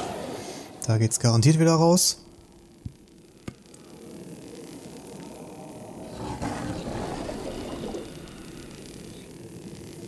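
A cutting torch hisses and crackles against a metal door.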